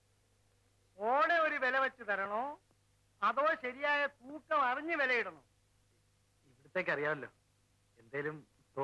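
An elderly man speaks with animation nearby.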